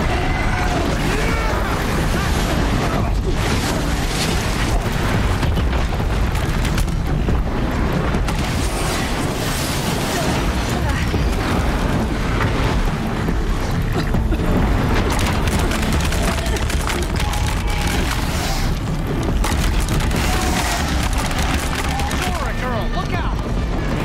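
Loud explosions and impacts boom in a fierce battle.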